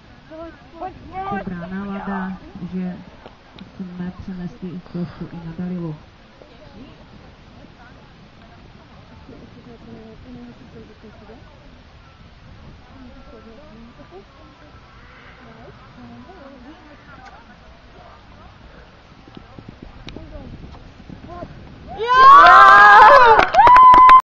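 A horse's hooves thud on grass at a canter.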